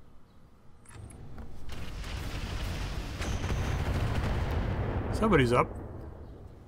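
Explosions boom and rumble, then die away.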